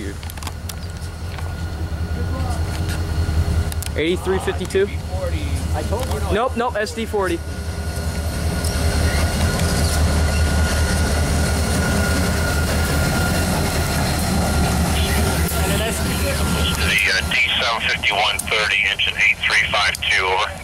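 A diesel locomotive engine rumbles deeply as it passes close by.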